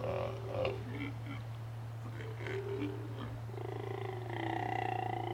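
Sea lions groan and bellow close by.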